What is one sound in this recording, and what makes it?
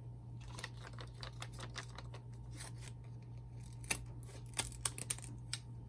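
A plastic pouch crinkles in someone's hands.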